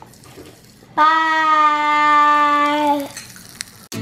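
A young girl holds a long, loud open-mouthed cry.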